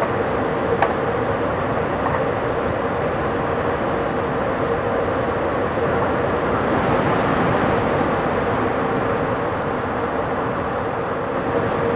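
A train rumbles steadily along the rails at high speed.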